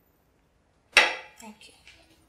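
A cup clinks down onto a table.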